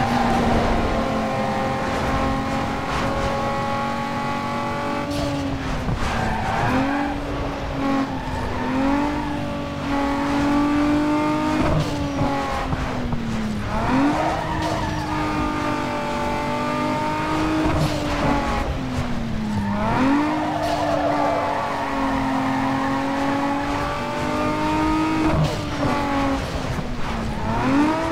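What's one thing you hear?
A racing car engine roars at high revs, its pitch dropping and rising as it shifts gears and slows for corners.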